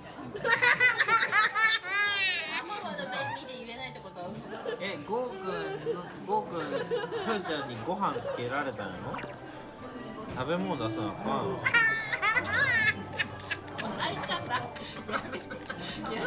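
A little boy giggles close by.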